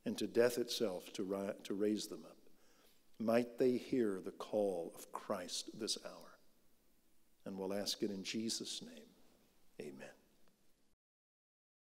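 An older man speaks calmly and solemnly through a microphone.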